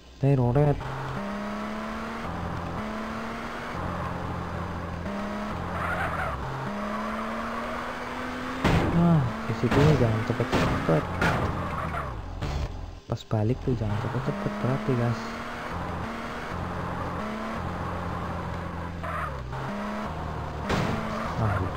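Tyres squeal as a car skids and drifts.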